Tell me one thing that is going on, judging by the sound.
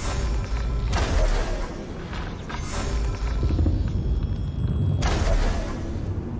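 A glowing bow releases arrows with sharp magical whooshes.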